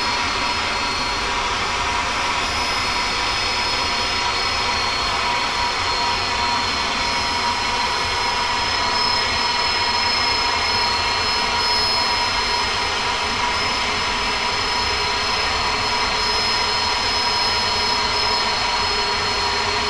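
Jet engines roar steadily as an airliner cruises.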